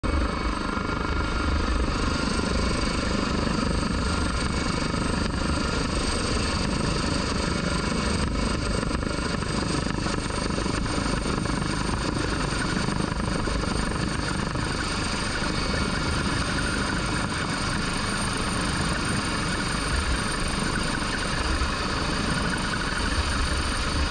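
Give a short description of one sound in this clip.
A helicopter's rotor thumps and its engine roars loudly and steadily close by.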